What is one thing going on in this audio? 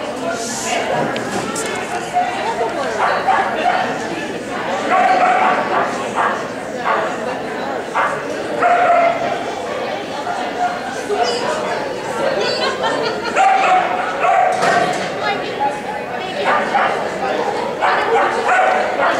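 A woman calls out commands and praise in a large echoing hall.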